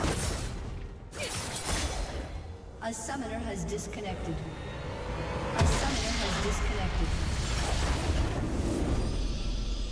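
Fighting game effects crash, boom and whoosh.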